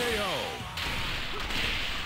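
A heavy blow lands with a loud crash.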